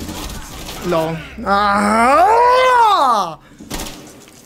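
A young man shouts loudly with a rising and falling voice.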